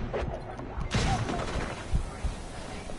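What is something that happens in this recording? A blast of flame roars.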